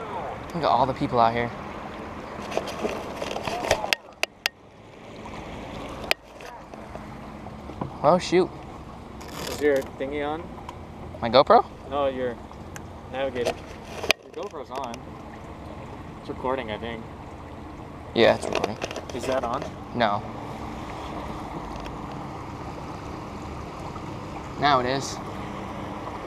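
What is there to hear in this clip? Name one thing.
A man talks casually nearby, outdoors.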